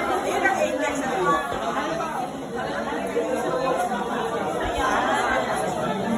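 A crowd of men and women chatters close by indoors.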